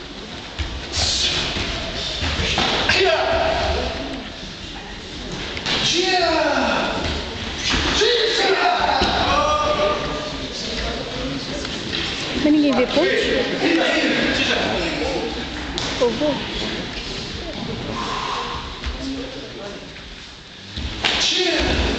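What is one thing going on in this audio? Bare feet thump and slide on a mat.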